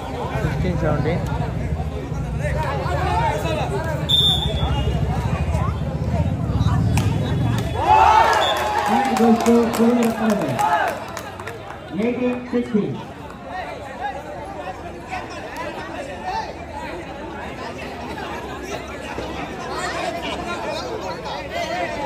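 Young men shout and call out across an open outdoor court.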